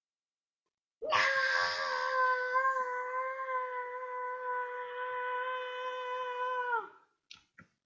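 A young boy wails a long, loud, steady note close to a microphone.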